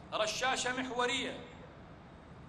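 A man shouts a command through a loudspeaker.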